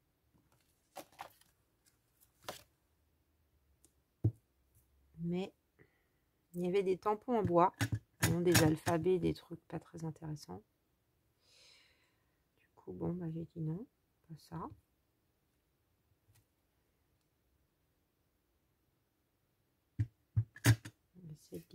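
A stamp taps down onto paper.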